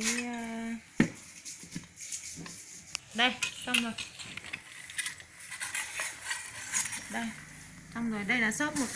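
Metal parts of a meat grinder clink as they are fitted together.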